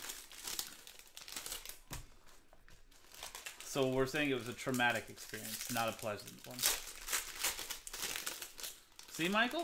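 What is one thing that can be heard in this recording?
Foil wrappers crinkle and tear as packs are ripped open.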